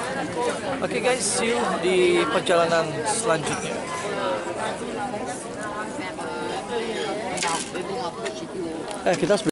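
A busy street crowd murmurs in the background outdoors.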